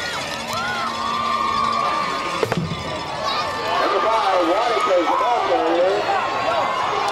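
A crowd cheers and shouts from stands outdoors.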